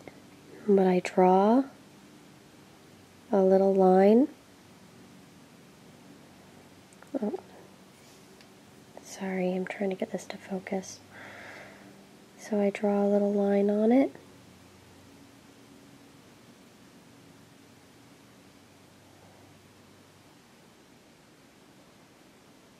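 A small pointed tool scrapes softly against a piece of clay.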